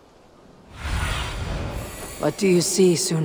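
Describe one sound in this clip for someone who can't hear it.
A raven's wings whoosh as it flaps.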